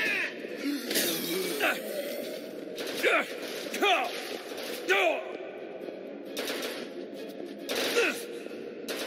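A shotgun fires loud, booming shots in an echoing space.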